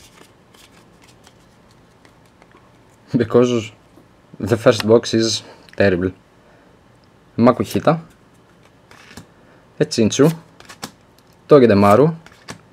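Trading cards rustle and slap softly as they are shuffled by hand.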